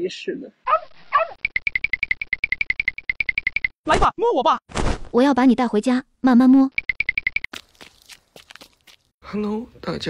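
A cartoon character speaks in a squeaky, sped-up voice with animation.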